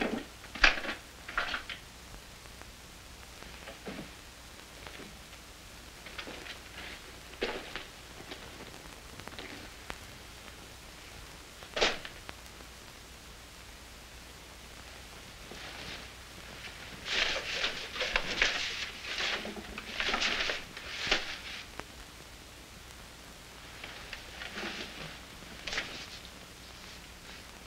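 Small objects rustle and clatter as a man rummages through them.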